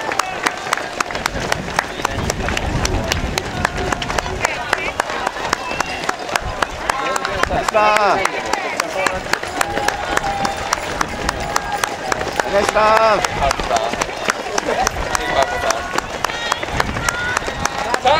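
Many runners' shoes patter quickly on pavement.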